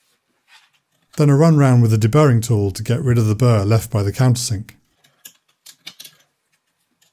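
A small metal tool scrapes and clicks against a metal part.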